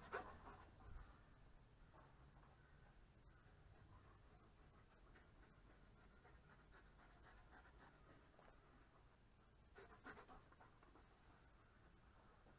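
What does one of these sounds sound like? A dog trots across soft grass.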